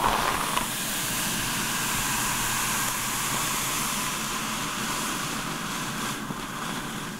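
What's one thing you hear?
Fingers brush and tap against the bristles of a hairbrush close up.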